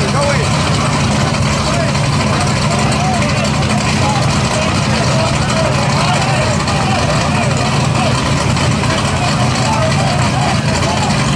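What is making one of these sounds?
A crowd murmurs and calls out in the background outdoors.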